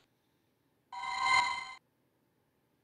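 A bright electronic jingle plays.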